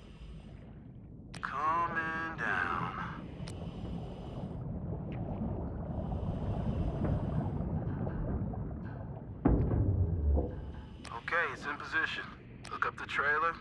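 Air bubbles gurgle and rumble from a diver breathing underwater.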